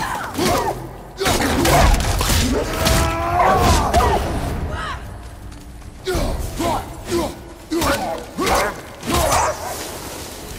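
Heavy blows thud and crunch in a close fight.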